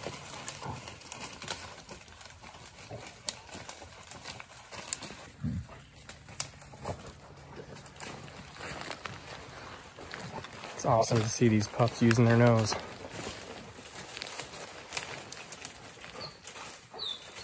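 Hounds rustle through dry leaves and undergrowth.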